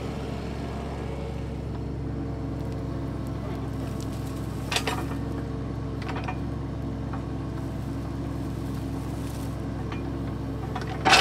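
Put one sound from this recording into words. A small excavator's diesel engine runs with a steady low rumble.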